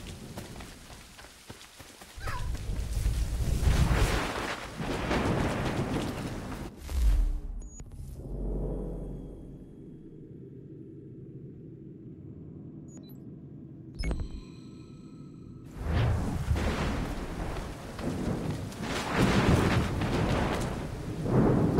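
Strong wind roars through trees outdoors.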